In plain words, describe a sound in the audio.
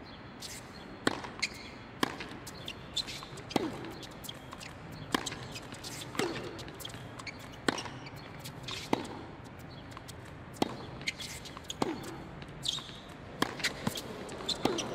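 Tennis rackets strike a ball back and forth in a sharp, regular rally.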